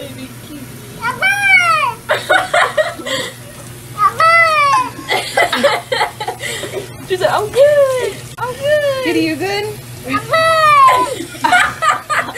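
A cat yowls loudly and repeatedly.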